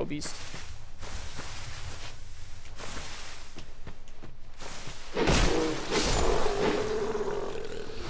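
Footsteps crunch on the ground.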